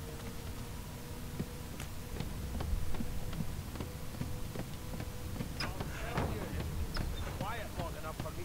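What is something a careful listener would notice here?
Footsteps thud softly on wooden boards.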